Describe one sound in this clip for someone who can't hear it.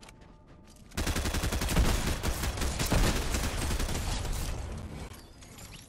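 Rapid gunfire rattles loudly and then fades.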